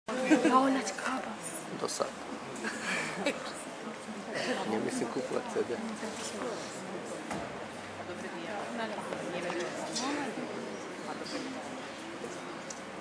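An audience of men and women murmurs and chatters in a large hall.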